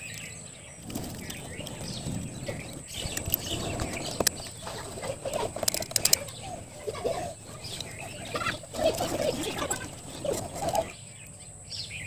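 A blade scrapes and cuts into bamboo.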